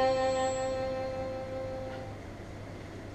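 A woman sings a long held note through a microphone, then it fades.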